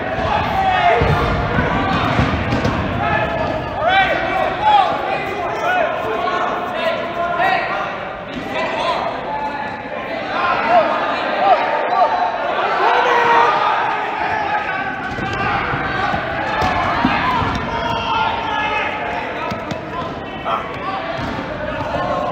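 Rubber balls thud as they are thrown and hit players.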